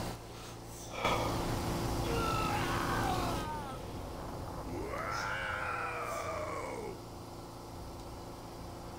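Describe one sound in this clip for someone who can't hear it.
A loud blast roars and rumbles.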